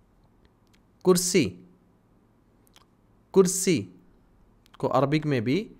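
A young man speaks slowly and clearly into a close microphone.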